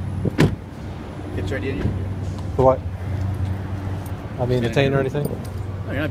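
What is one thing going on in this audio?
A man speaks firmly close by.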